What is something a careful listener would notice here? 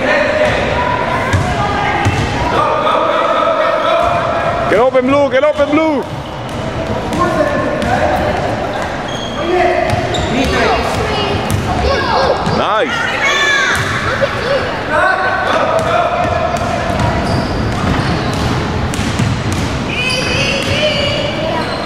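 A basketball thumps as it bounces on the floor.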